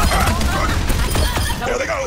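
An explosion booms loudly in a video game.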